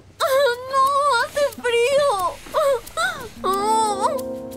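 A young woman laughs playfully close by.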